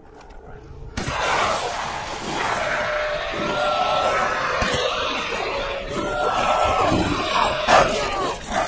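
A beast snarls and howls close by.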